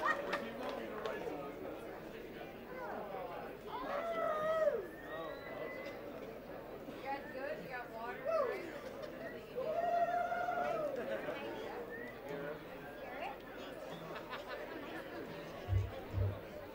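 A harmonica wails and bends through a microphone on a stage.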